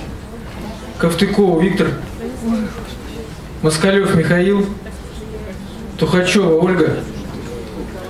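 A man speaks calmly into a microphone, heard over loudspeakers in a large hall.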